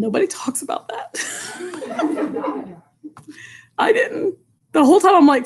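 A middle-aged woman laughs loudly over an online call.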